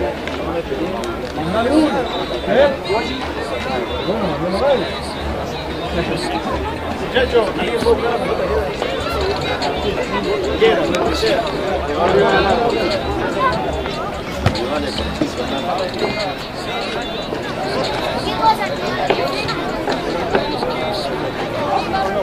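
Rugby players shout to each other outdoors across an open field.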